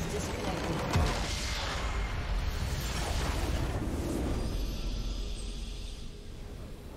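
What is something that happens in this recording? A large crystal bursts with a deep, rumbling explosion.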